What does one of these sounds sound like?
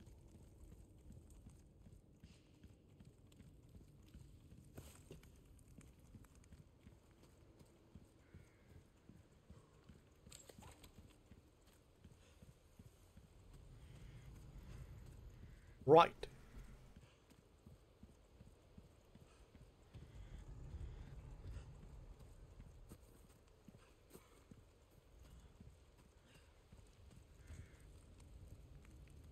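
Footsteps crunch softly on dirt and gravel.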